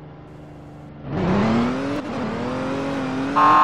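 A car engine revs up and the car speeds away.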